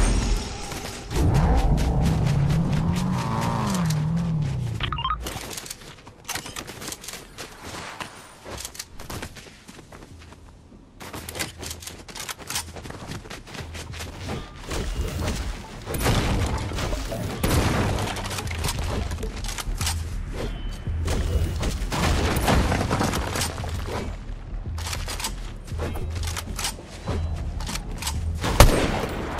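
Footsteps run quickly over snowy ground.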